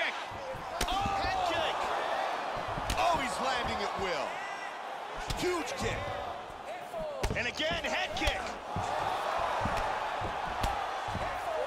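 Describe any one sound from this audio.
Kicks and punches land with sharp thuds.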